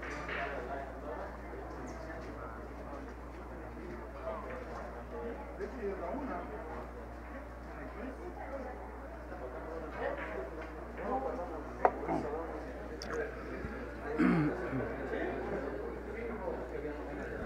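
Men murmur and talk quietly in the background.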